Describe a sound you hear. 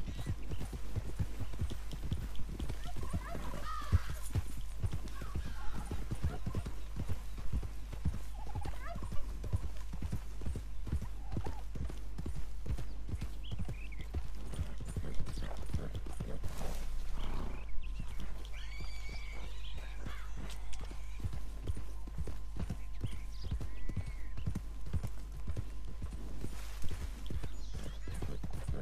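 Horse hooves thud rapidly on grass at a gallop.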